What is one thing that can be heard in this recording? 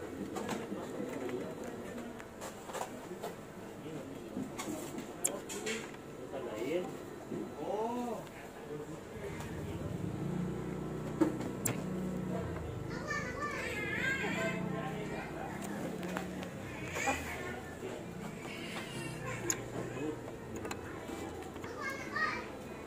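Plastic plugs click into sockets, with a few sharp clicks now and then.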